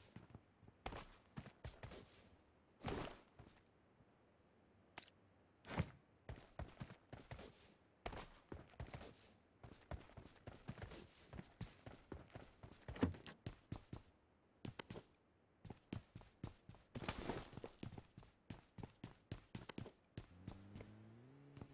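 Quick footsteps run over ground and then a wooden floor.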